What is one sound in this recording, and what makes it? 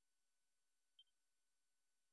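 A short, soft menu chime sounds.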